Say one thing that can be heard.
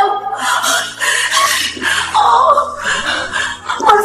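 A middle-aged woman cries out and groans in pain close by.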